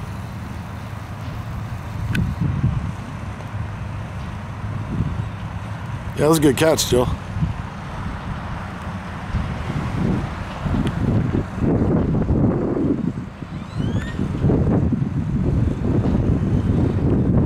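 A distant jet plane approaches with a low rumble that slowly grows louder.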